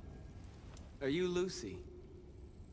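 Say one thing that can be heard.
A man asks a short question.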